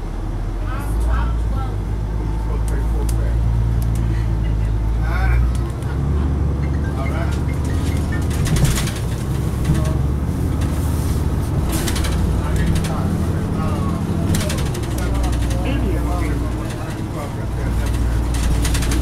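A bus engine rumbles steadily from inside the bus.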